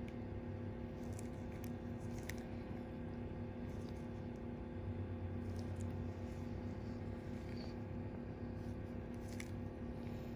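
Rubber gloves rub and squeak faintly against skin.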